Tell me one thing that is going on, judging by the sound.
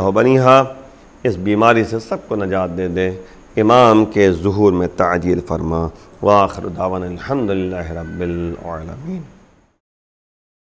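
A middle-aged man speaks calmly and expressively into a close microphone.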